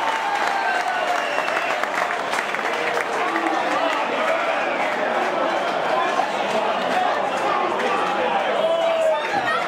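A large crowd chatters and calls out all around, outdoors.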